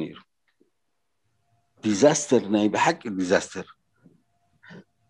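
An older man speaks with animation over an online call.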